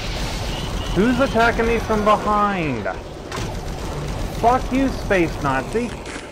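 A monster roars and snarls loudly.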